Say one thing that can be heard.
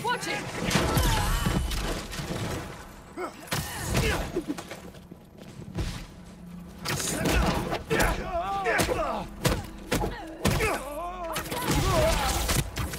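Punches and impacts thud in a video game fight.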